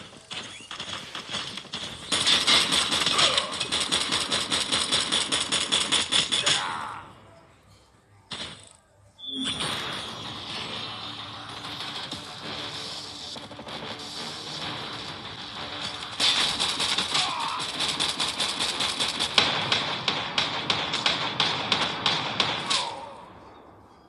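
A rapid-firing minigun fires long bursts of gunshots.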